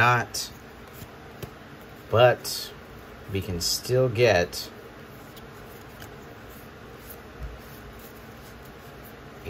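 Playing cards rustle and slide against each other as they are flipped through.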